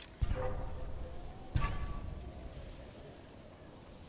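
Tall dry grass rustles as someone runs through it.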